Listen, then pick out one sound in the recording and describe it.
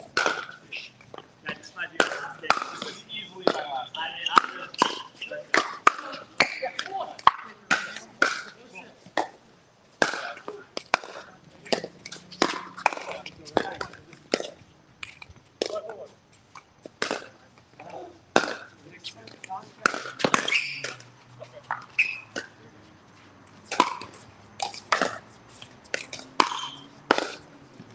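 Paddles strike a plastic ball with sharp hollow pops.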